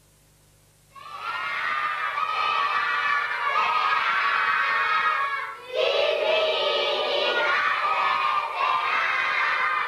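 A group of young children sing together.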